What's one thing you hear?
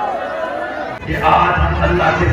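A man's voice booms through loudspeakers in a large echoing space.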